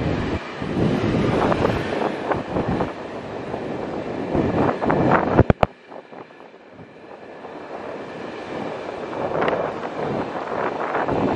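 A train rumbles and clatters past on the tracks.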